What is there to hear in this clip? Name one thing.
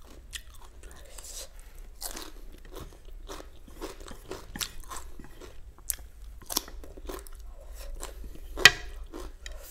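Chopsticks click against a plate.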